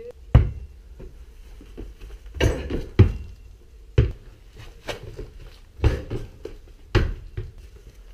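A basketball bounces hard on pavement, thudding repeatedly.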